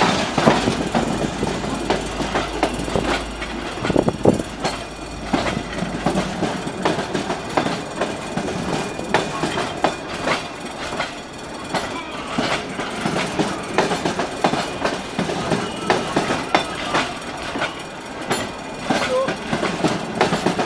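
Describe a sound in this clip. A passenger train rolls past close by, its wheels clattering rhythmically over the rail joints.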